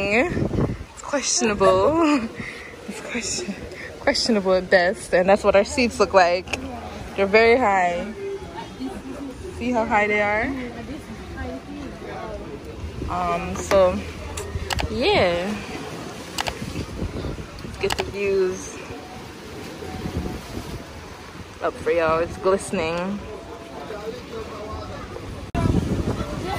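A young woman talks casually, close by.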